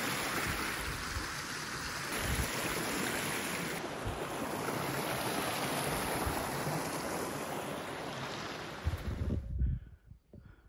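A stream gurgles and rushes close by.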